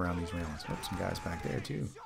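Rapid gunfire blasts at close range.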